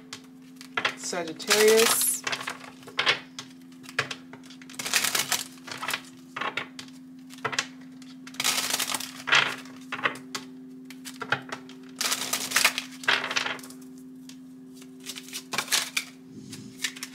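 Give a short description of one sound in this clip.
Cards shuffle and riffle in a pair of hands.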